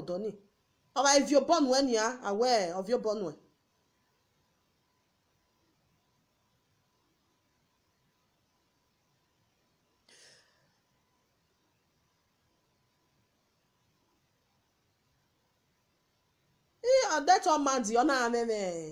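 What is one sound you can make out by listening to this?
A young woman speaks with animation close to a phone microphone.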